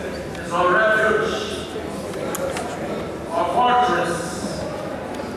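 A crowd of men and women sing together in a large echoing room.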